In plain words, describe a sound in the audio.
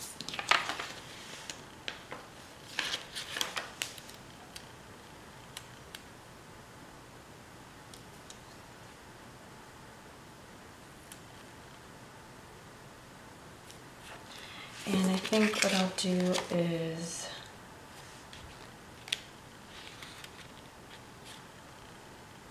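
Sheets of paper rustle and crinkle as hands handle them.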